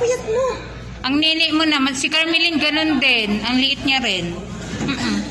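A woman speaks loudly and with animation nearby.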